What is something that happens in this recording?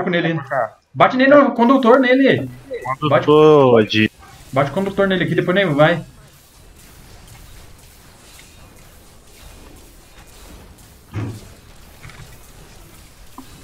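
Magic spells crackle and whoosh in a video game battle.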